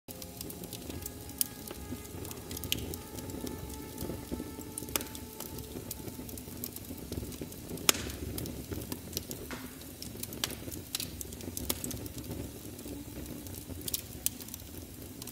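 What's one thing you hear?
A fire crackles and roars.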